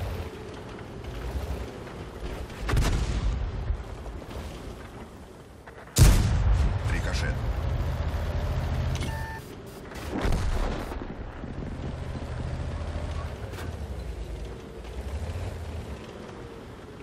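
A tank engine rumbles low and heavy, then fades.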